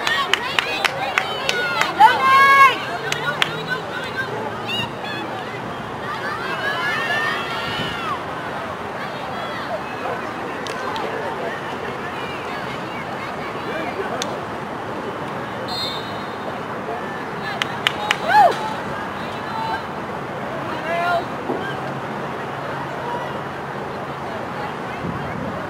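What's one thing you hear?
Young women shout and call out to each other outdoors on an open field.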